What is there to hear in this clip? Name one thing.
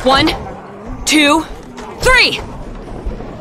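A young woman counts out loud and shouts.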